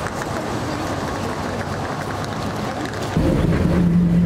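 A bus engine idles.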